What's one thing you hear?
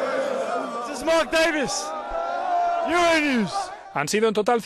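Young men shout excitedly close by.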